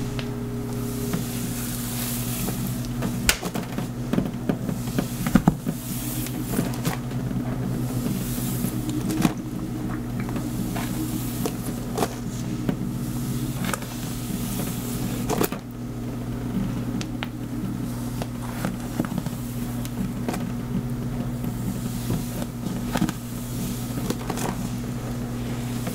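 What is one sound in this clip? Fingers rub and scratch against a scalp close by.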